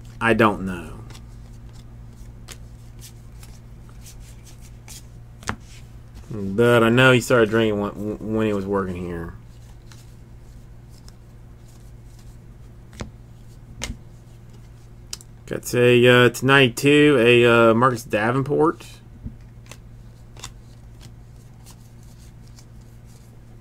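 Stiff cards flick and rustle as they are shuffled by hand.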